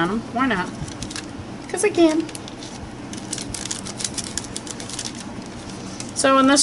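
Thin paper crinkles and rustles as it is peeled and rubbed by hand.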